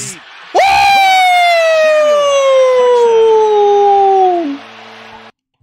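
A young man screams loudly and excitedly into a microphone in a long falling shout.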